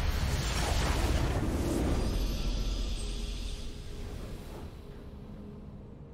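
A short victory fanfare plays and fades.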